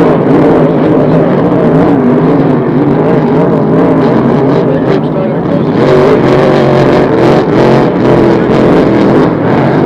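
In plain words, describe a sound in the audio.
A racing boat's engine roars loudly, its pitch wavering up and down.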